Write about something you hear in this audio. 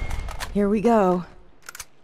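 A rifle fires a few quick shots.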